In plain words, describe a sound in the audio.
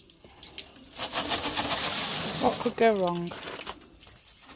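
Water sloshes and swirls in a barrel.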